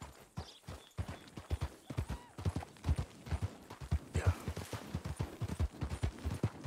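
A horse's hooves thud in a quick, steady gallop.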